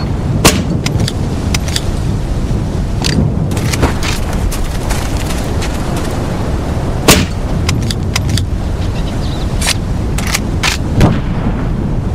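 Loud explosions boom in bursts.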